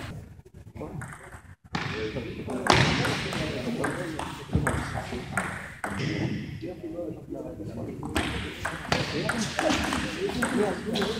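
A table tennis ball clicks back and forth on paddles and a table in an echoing hall.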